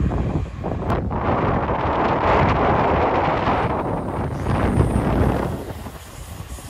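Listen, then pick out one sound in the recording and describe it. A train rumbles past along the tracks.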